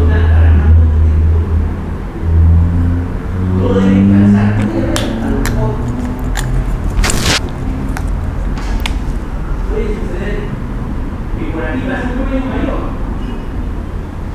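A man speaks steadily, as if lecturing, into a microphone.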